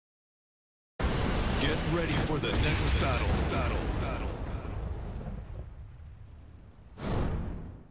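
A loud explosion booms and rumbles away.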